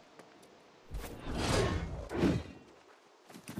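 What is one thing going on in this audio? A blade swooshes through the air.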